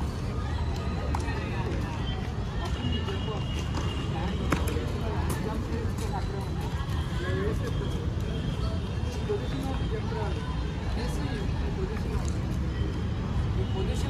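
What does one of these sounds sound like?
Young men talk and call out in the open air.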